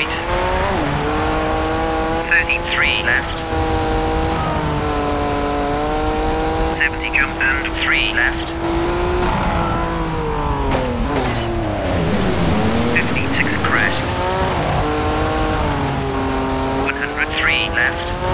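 A rally car engine roars at high revs, dropping in pitch as it shifts gears and slows for turns.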